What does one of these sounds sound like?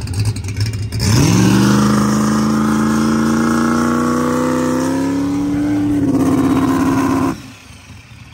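A turbocharged engine revs up with a rising whine and holds there.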